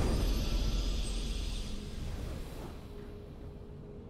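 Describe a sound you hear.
A video game's victory fanfare rings out and fades away.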